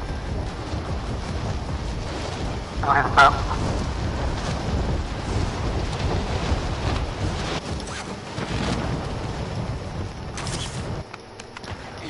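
Wind rushes loudly past during a fast fall.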